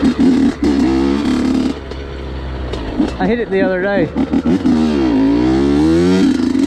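A dirt bike engine revs loudly up and down, close by.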